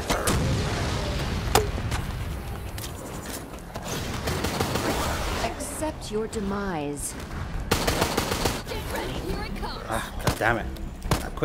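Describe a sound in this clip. Gunfire and explosions crack and boom loudly.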